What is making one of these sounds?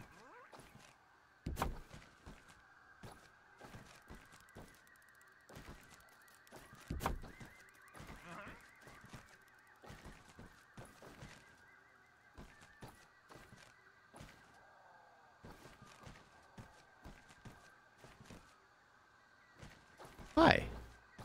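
Short game interface clicks and thuds sound as items are placed.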